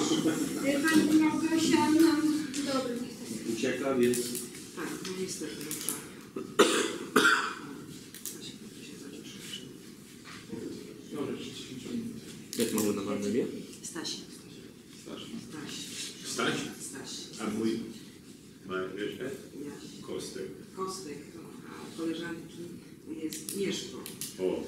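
A woman speaks calmly at a distance.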